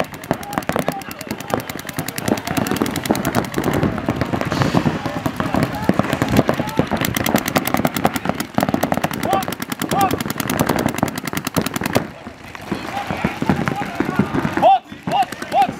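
Paintball guns fire in rapid bursts of sharp pops.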